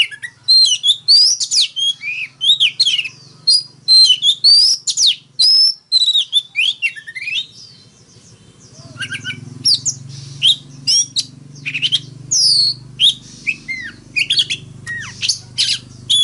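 A songbird sings loud, varied whistling phrases close by.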